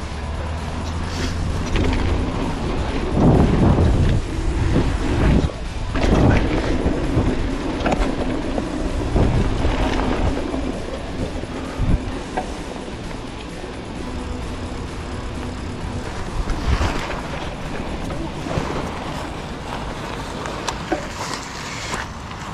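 Bicycle tyres roll and crunch over dirt and gravel.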